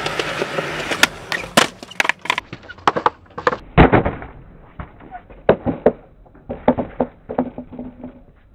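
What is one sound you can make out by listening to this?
A skateboard clacks and slaps against concrete.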